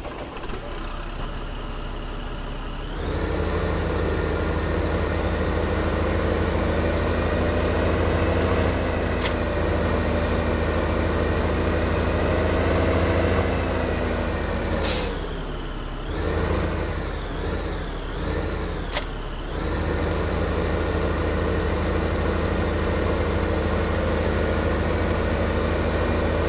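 A tractor engine rumbles steadily and revs up and down.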